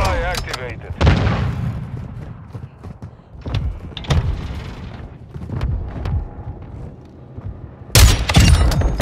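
A sniper rifle fires loud, booming shots.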